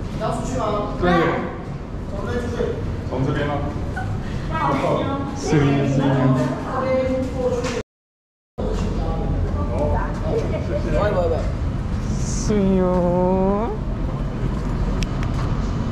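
A man talks nearby in a conversational tone.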